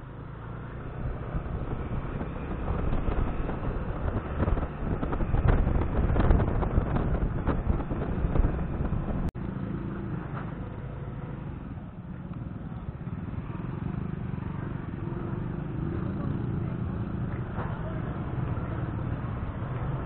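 A scooter engine hums steadily close by.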